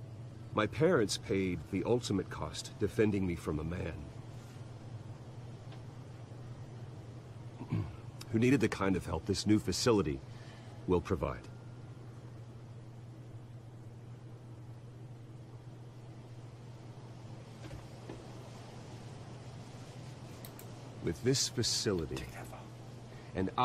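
A man speaks calmly, with pauses.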